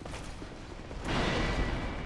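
A metal blade strikes armour with a sharp clang.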